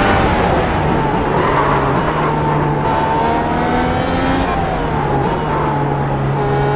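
A racing car engine roars loudly and drops in pitch as the car slows and shifts down.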